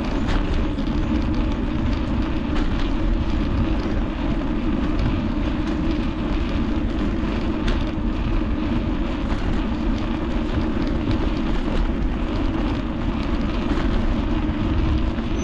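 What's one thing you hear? Bicycle tyres hum and rattle over paving stones.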